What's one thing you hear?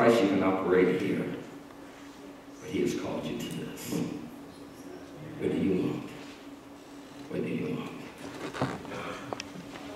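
A man preaches with animation into a microphone in a large echoing hall.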